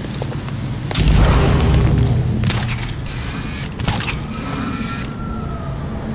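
A grappling line whooshes and snaps taut.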